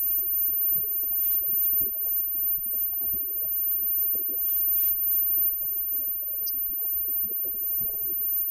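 Electric guitars strum and ring out.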